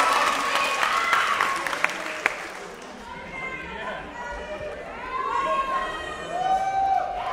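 Young people in a crowd whoop and shout excitedly.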